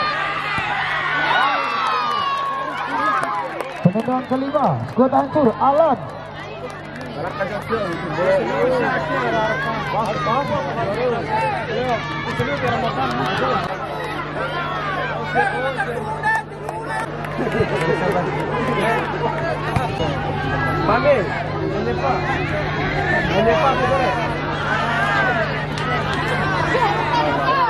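A large outdoor crowd chatters, cheers and shouts.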